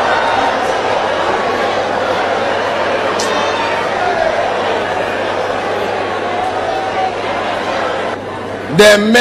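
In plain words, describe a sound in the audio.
A crowd laughs loudly.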